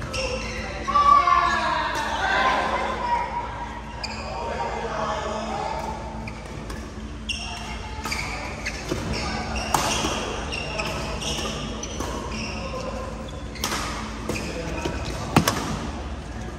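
Sports shoes squeak on a hard floor.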